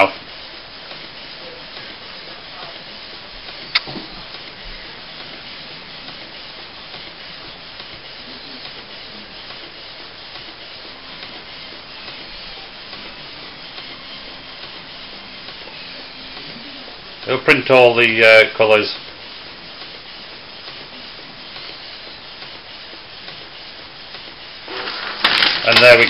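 An inkjet printer whirs and buzzes as its print head shuttles back and forth.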